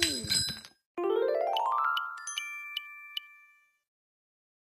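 A bright game chime climbs quickly in rising notes.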